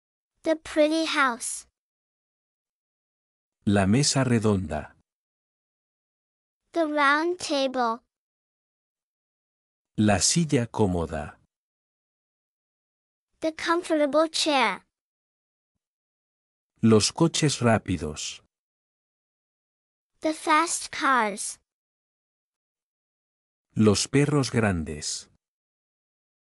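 A young woman speaks clearly and with animation in short phrases, close to a microphone, with pauses between them.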